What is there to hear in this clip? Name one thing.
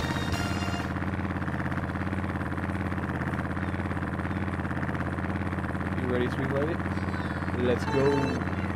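Kart engines idle with a steady low hum.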